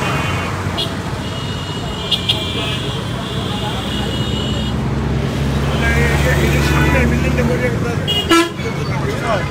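Vehicle horns honk nearby.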